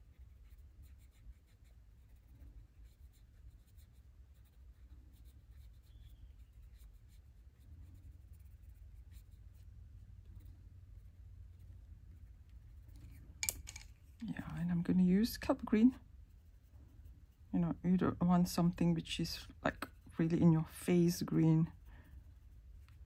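A coloured pencil scratches softly on paper.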